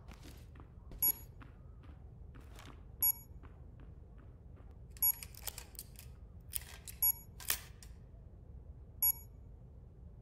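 An electronic device beeps sharply every two seconds.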